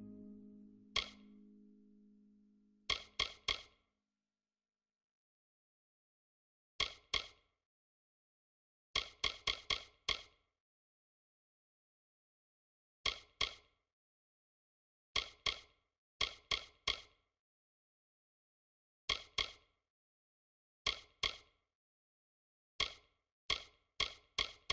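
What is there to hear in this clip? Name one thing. Short, bright menu clicks tick in quick bursts as a selection moves.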